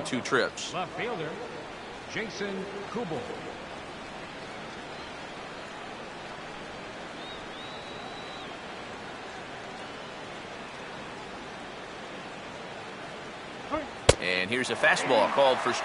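A crowd murmurs steadily in a large open stadium.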